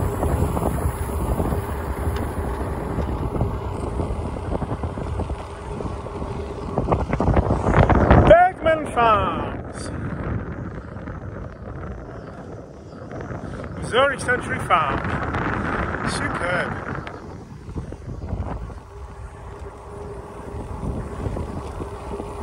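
Tyres roll steadily over a paved road.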